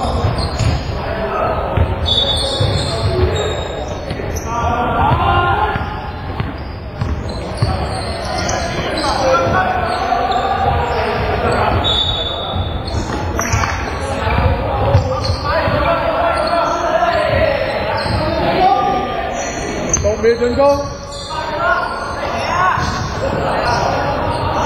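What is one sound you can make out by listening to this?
Basketball players' sneakers squeak and thud on a wooden court in a large echoing hall.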